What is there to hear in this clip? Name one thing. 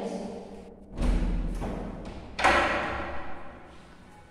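A wooden door bangs loudly.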